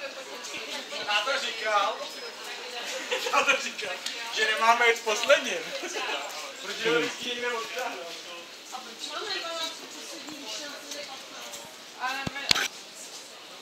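Men and women chatter nearby in lively voices.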